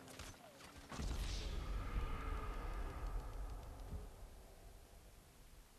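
A loud explosion booms and rumbles, then fades.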